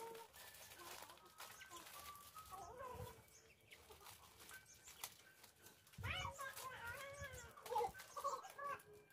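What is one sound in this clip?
A woman rustles and handles leafy greens in a basin.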